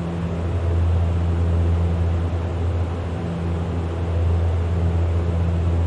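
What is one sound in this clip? A propeller engine drones with a steady, low hum.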